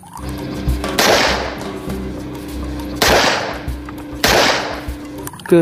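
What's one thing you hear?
A pistol fires loud sharp shots outdoors.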